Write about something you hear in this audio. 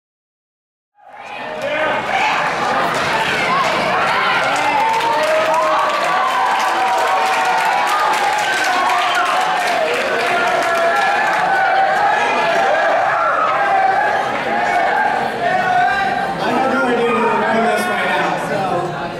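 A large crowd cheers and screams loudly in an echoing hall.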